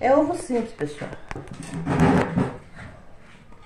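A chair scrapes across the floor.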